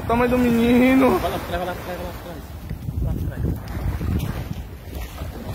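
Small waves wash up onto sand and fizz as they pull back.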